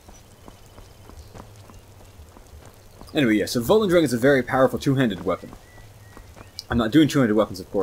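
Footsteps tread softly over stones and leaves.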